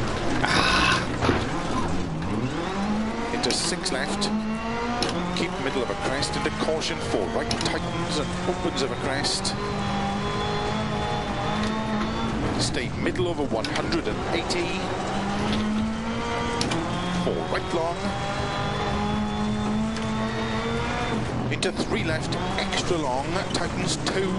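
A rally car engine revs hard, rising and falling through the gears.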